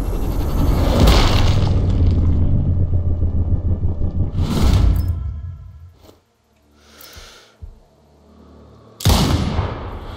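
A rifle shot cracks sharply and echoes.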